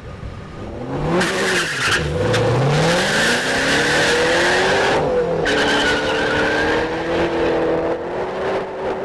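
A sports car engine revs up loudly, then roars as the car pulls away.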